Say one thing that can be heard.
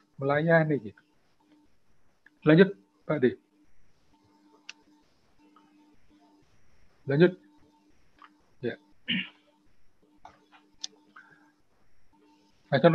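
A man speaks calmly in short bursts through an online call.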